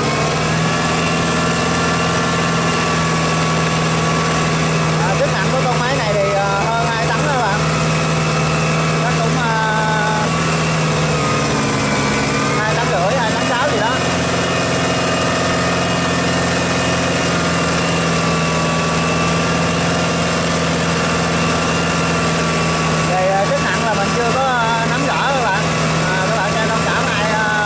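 A tractor engine runs with a steady loud drone, dipping briefly in pitch.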